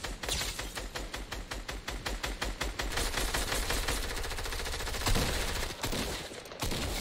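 A rapid burst of gunfire rattles close by.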